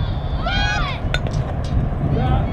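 A bat cracks against a softball.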